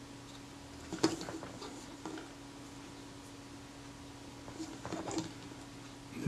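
Small metal parts click and scrape together.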